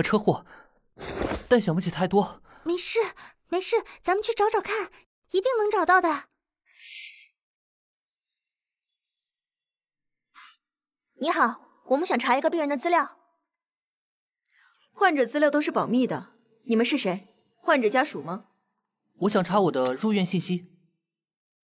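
A young man speaks calmly and clearly.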